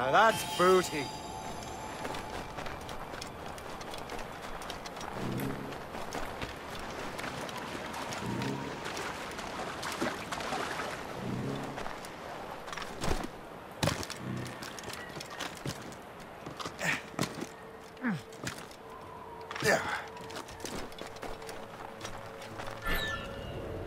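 Footsteps crunch on snow and sand.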